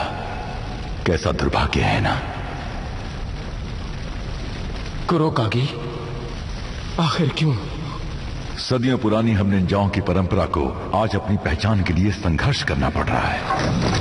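A man speaks slowly and menacingly, close by.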